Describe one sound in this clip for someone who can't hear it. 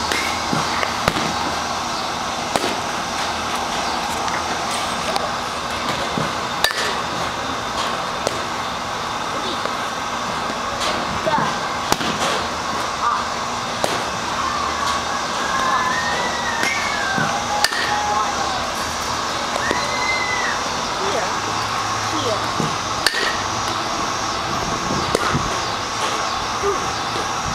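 A baseball bat sharply cracks against balls again and again.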